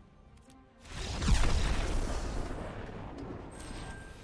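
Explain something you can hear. A fiery magical blast booms in a card game.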